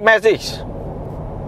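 A short two-note electronic chime sounds from a car's speakers.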